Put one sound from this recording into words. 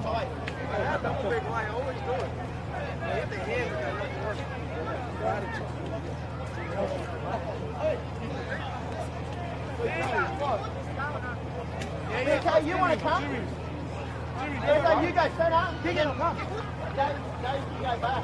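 Young women shout and call to each other outdoors across an open field.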